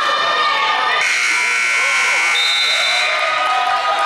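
A loud buzzer blares steadily.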